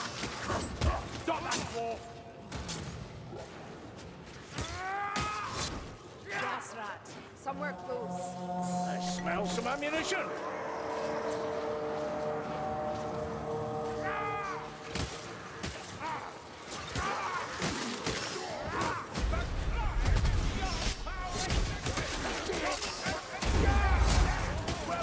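Blades swing and strike flesh with wet thuds.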